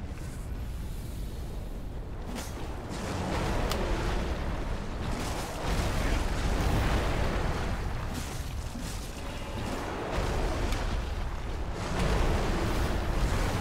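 Footsteps crunch quickly on stony ground.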